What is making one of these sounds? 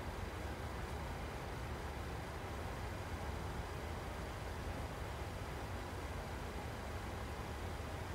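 A jet airliner's engines drone steadily in the cockpit.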